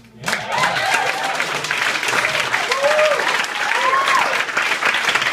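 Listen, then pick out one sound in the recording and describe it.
A small acoustic band plays banjo and guitars live.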